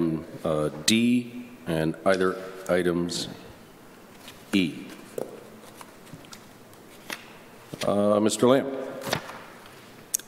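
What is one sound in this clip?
A middle-aged man reads aloud calmly into a microphone, in short phrases with pauses.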